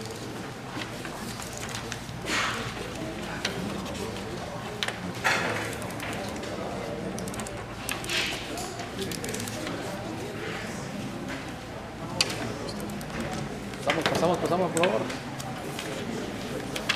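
A crowd of men and women murmurs in the background.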